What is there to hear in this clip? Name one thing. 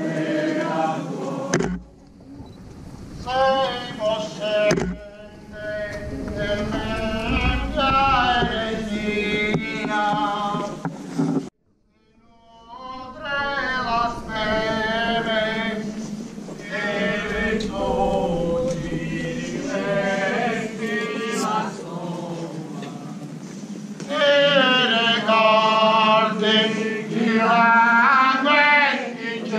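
A crowd of men and women sings slowly together outdoors.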